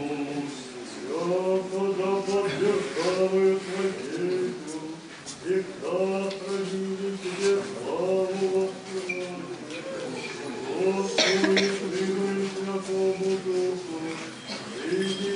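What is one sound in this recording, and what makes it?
A man intones a chant alone, echoing in a large hall.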